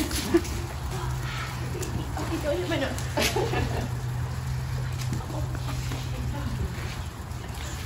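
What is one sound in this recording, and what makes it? A woman talks softly and warmly nearby.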